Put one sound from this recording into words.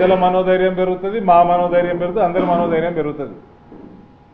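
A man speaks loudly and forcefully into a microphone.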